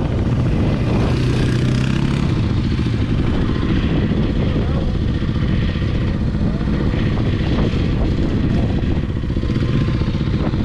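A dirt bike engine roars up close.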